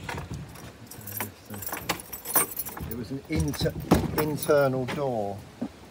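A key rattles in a door lock.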